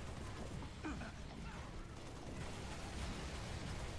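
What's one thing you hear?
Sci-fi weapon fire crackles and whizzes in bursts.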